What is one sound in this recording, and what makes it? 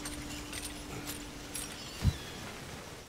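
A chain rattles as a figure climbs.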